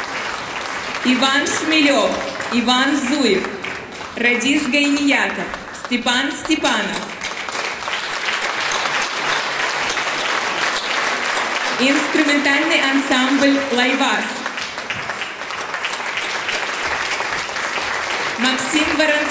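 A woman speaks through a loudspeaker with animation.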